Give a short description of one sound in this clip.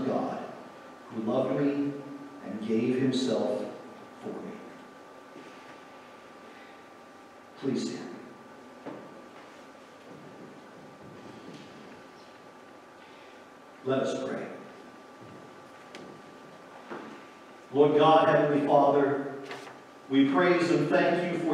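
A man speaks calmly through a microphone in a large echoing hall.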